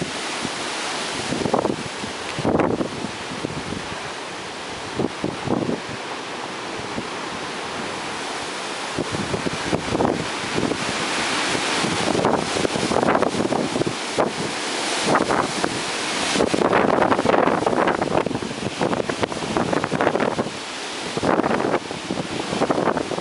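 Tree branches thrash and rustle in the wind.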